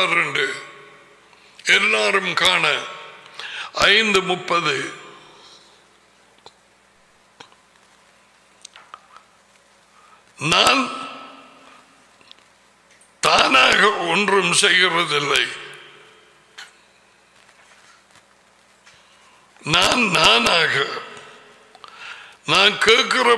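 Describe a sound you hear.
A middle-aged man speaks with emphasis into a microphone, in bursts with long pauses.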